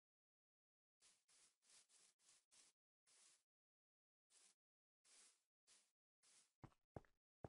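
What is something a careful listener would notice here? Footsteps rustle on grass.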